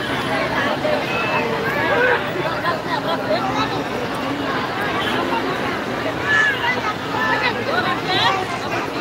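A large crowd of men chatters and shouts outdoors.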